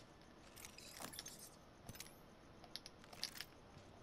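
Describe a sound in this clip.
Equipment clicks and rattles as items are picked up from a crate.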